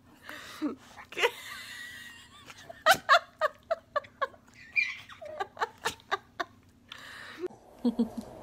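A baby giggles in short bursts.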